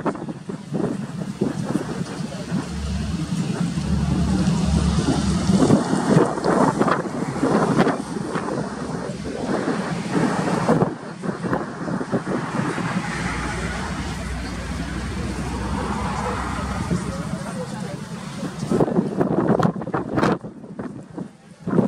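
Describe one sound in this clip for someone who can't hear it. A propeller plane drones steadily as it approaches overhead.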